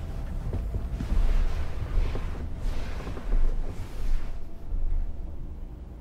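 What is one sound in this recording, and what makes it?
Hands brush and pat soft bedsheets.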